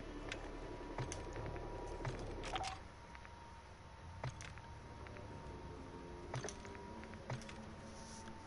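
Soft interface clicks sound with each menu selection.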